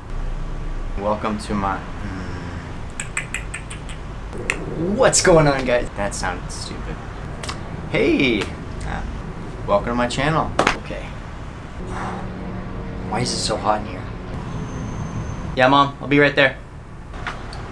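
A young man talks close by, in short animated bursts with pauses.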